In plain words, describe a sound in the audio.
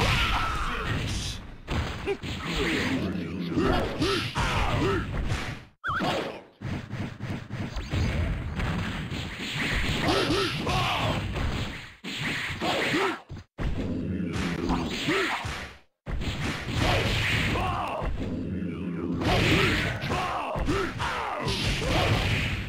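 Punches and kicks land with sharp impact sounds.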